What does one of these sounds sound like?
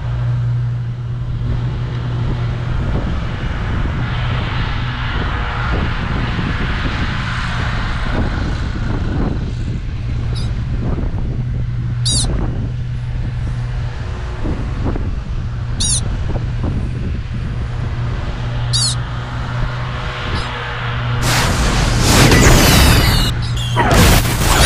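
A vehicle engine hums steadily while driving.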